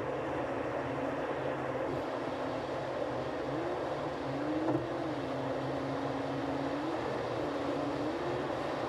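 Tyres roar steadily on a highway from inside a moving car.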